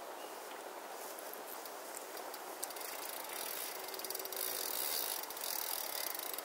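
Wind blows steadily across open water outdoors, growing a little stronger.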